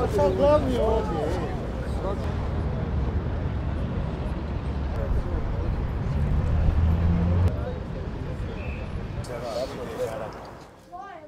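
Men talk outdoors in a crowd.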